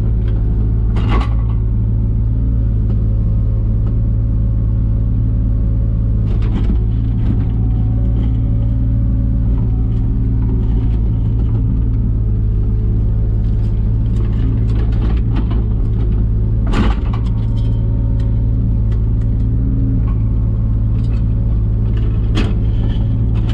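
A digger bucket scrapes and knocks against soil and stones.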